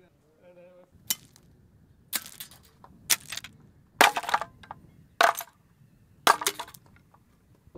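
Metal parts clatter as they are set down on gravel.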